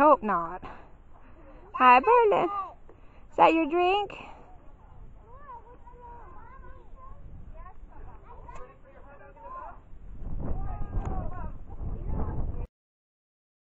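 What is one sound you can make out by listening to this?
Young girls talk and shout outdoors.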